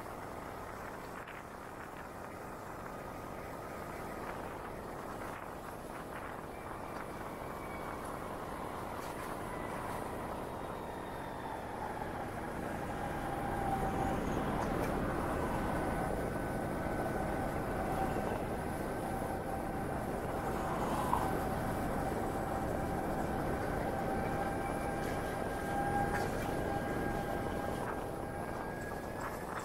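A motorcycle engine hums steadily while riding, shifting pitch now and then.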